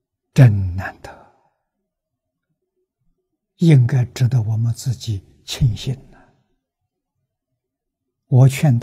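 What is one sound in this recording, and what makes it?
An elderly man speaks calmly and warmly into a close microphone, in short phrases with pauses.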